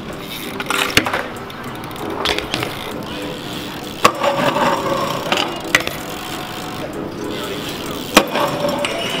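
A bike lands with a hard thud on concrete.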